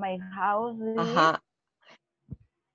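A young woman laughs over an online call.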